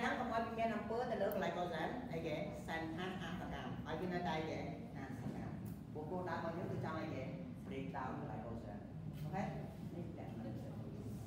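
A man explains calmly and clearly, lecturing in a slightly echoing room.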